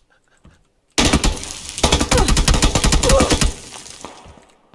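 A rifle fires rapid bursts at close range.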